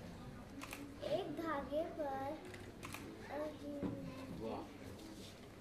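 A young girl reads aloud in a clear, lilting voice close by.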